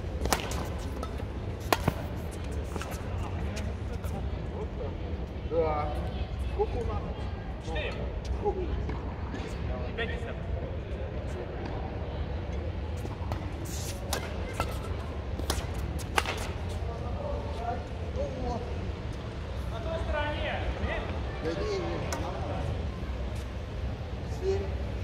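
Badminton rackets strike a shuttlecock with sharp pops in a large echoing hall.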